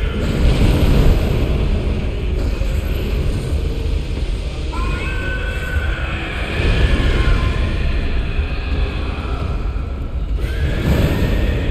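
Flames roar and crackle loudly.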